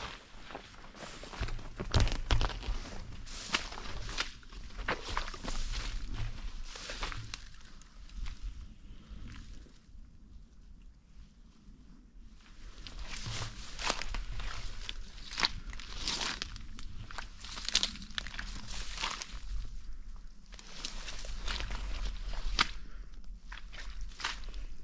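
Wind gusts and rustles through dry grass outdoors.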